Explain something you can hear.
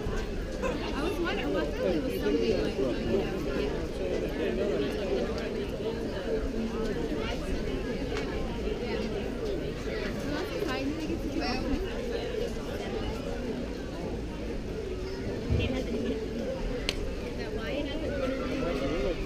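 Men and women chatter and call out nearby outdoors.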